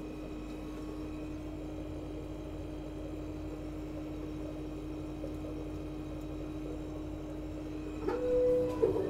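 A machine hums steadily close by.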